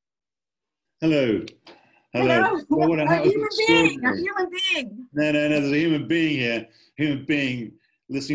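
An elderly man talks calmly over an online call.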